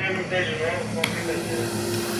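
A plastic checker piece clicks down on a board.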